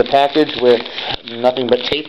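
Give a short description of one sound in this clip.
A hand rubs and crinkles a plastic padded envelope.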